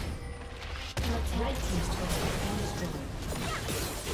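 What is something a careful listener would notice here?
Magic blasts burst and crackle in a video game battle.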